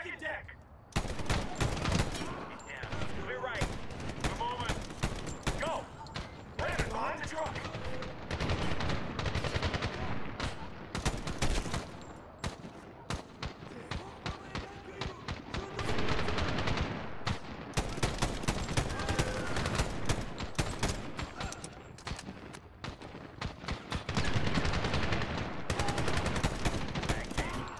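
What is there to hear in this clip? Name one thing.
Rifle shots crack one after another, with short bursts and pauses.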